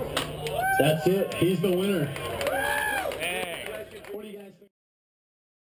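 Young men shout and cheer nearby.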